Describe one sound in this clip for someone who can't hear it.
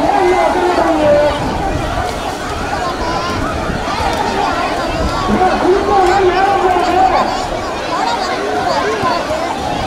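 Water splashes as it is thrown.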